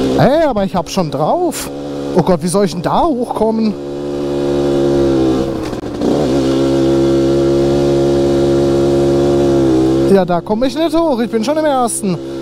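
A motorcycle engine revs up and down, then holds a steady drone.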